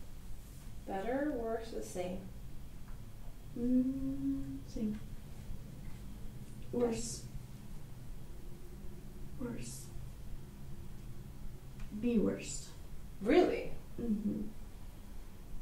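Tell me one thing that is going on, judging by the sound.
A woman speaks calmly nearby, with pauses.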